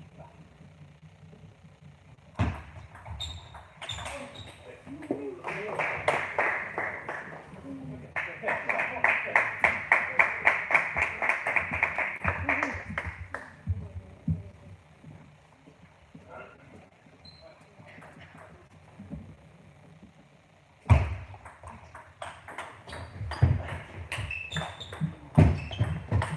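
Sneakers squeak on the floor as players lunge.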